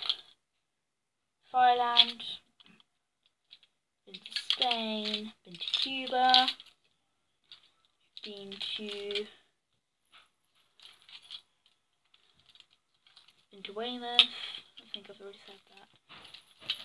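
Small plastic toys rattle and click in a girl's hands.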